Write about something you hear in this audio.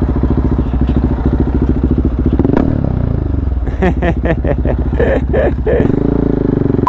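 A motorcycle engine idles with a rapid, throbbing rumble close by.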